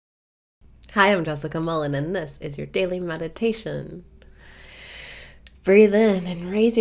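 A young woman speaks cheerfully and close to a microphone.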